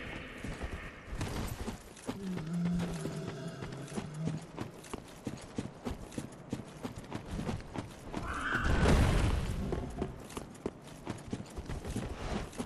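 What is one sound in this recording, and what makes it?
Armoured footsteps crunch steadily over leaves and rocks.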